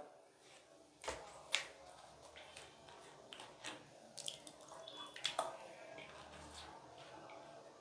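A plastic bottle crinkles and clicks in a man's hands.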